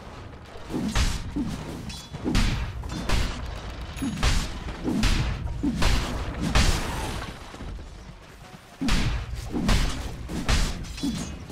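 Weapons clash and strike in a fight.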